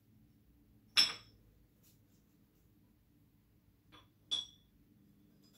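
Plastic pieces click and knock as they are stacked.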